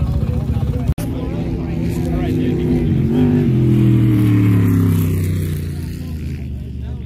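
An off-road buggy engine roars close by as the buggy speeds past, its pitch dropping as it goes away.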